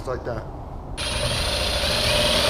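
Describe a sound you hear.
A power drill whirs.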